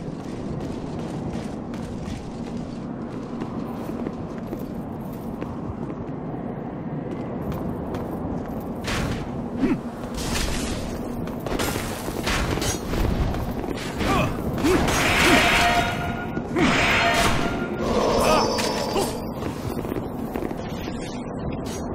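Footsteps pound quickly on stone.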